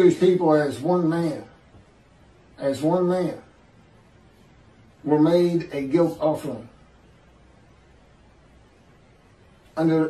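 A middle-aged man speaks calmly in short phrases over an online call.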